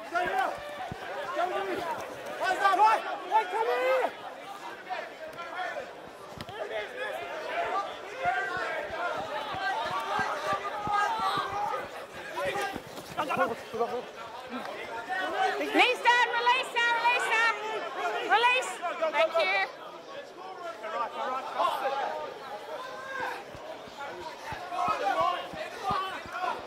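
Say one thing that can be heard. Rugby players shout and call to each other on an open field.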